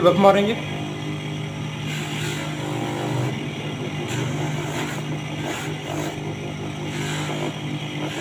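A spinning felt wheel buffs the edge of a lens with a soft, steady rubbing.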